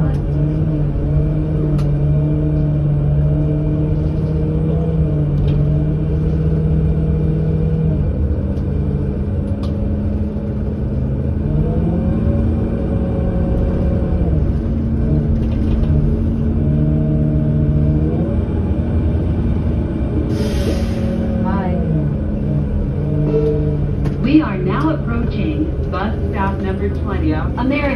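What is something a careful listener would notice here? A bus engine hums and whines steadily, shifting pitch as the bus speeds up and slows.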